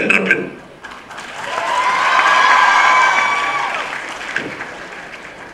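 An audience cheers and whistles loudly.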